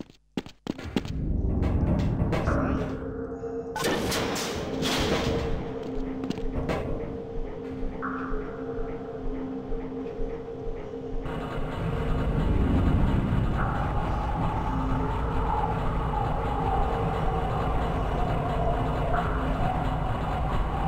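A low machine hum drones steadily.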